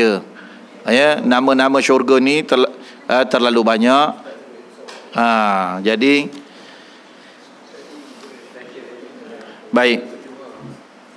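An elderly man speaks with pauses into a close microphone.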